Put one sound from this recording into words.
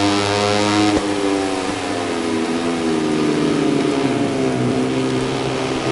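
A motorcycle engine drops in pitch as it slows down.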